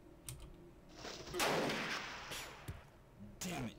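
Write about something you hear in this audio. Gunshots crack in a short burst.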